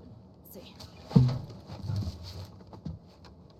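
A second young woman answers briefly, close by.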